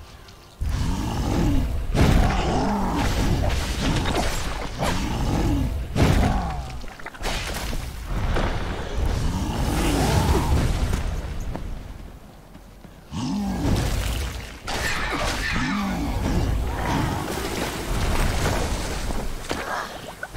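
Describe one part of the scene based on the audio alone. A monstrous creature roars and growls in a video game battle.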